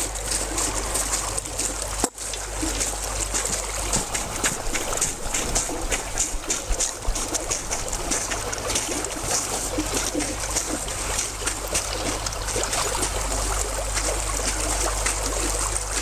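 Footsteps crunch on snowy ice.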